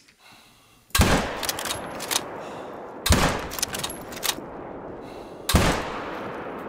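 Rifle shots crack loudly and echo across open country.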